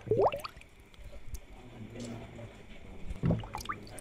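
Air bubbles rise and gurgle steadily in an aquarium.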